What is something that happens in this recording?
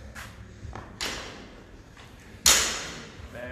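A barbell clanks as it is lifted.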